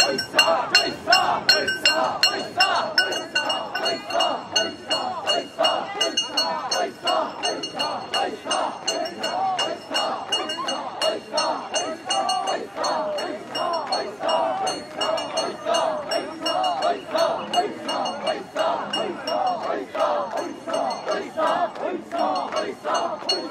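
A crowd of men chants loudly in rhythmic unison outdoors.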